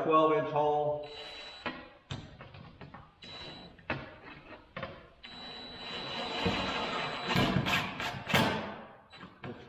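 A power saw whirs as it cuts through wood.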